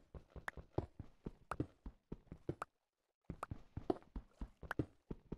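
Stone blocks are chipped with rapid, crunchy knocks.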